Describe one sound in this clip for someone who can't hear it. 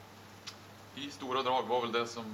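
A man speaks calmly into a nearby microphone.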